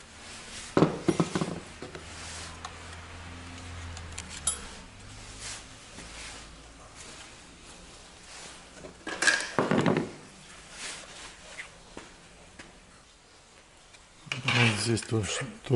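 Hard plastic parts clatter and knock as they are handled.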